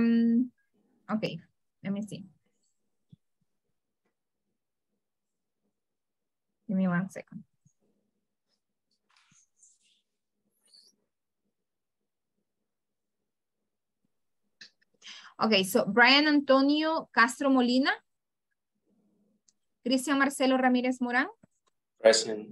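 A woman speaks with animation over an online call, in short bursts with long pauses.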